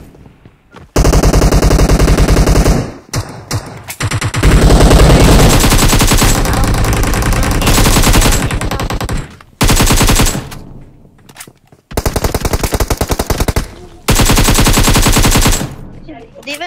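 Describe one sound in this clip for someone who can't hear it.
Rapid bursts of gunfire blast loudly.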